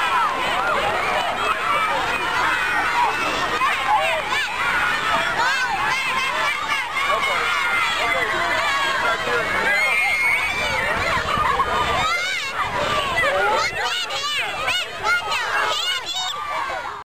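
Young children chatter, shout and squeal excitedly outdoors.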